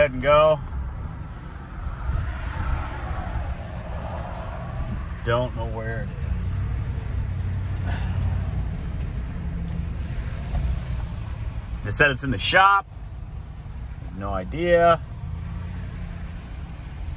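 A vehicle engine rumbles low and steady while driving.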